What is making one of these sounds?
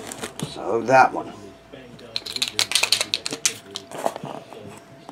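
Foil packs crinkle and rustle.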